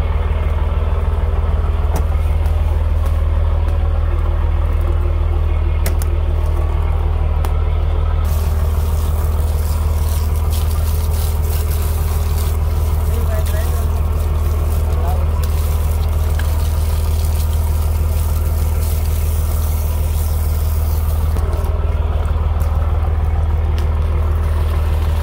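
A boat engine hums steadily and low throughout.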